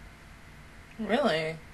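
A young woman close to a microphone briefly speaks up with a rising and falling voice.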